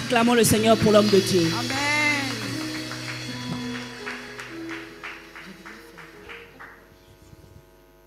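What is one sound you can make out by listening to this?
A man sings loudly into a microphone, his voice fading out.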